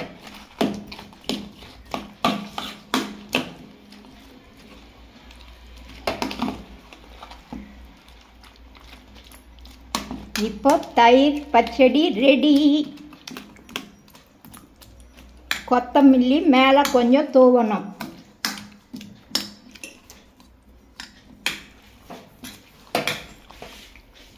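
A metal spoon clinks and scrapes against a metal bowl while mixing food.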